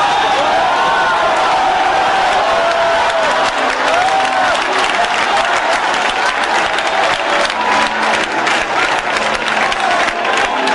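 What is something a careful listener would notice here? A large crowd sings together.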